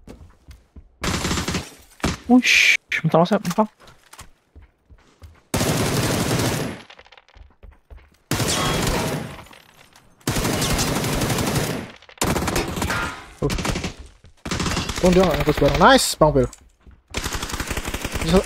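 Automatic rifle fire rattles in loud bursts.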